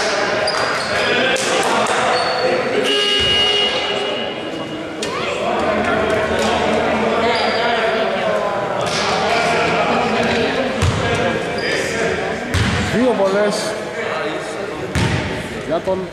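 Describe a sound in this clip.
Men shout and call out to each other across the hall.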